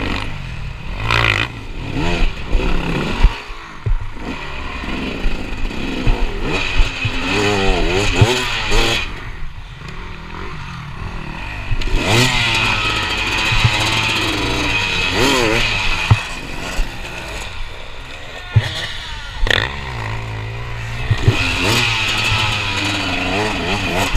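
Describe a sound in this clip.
A dirt bike engine revs hard up close, rising and falling in pitch.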